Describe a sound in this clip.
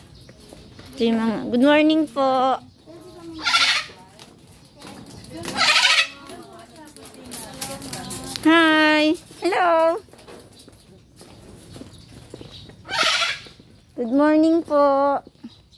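A parrot squawks loudly several times, close by.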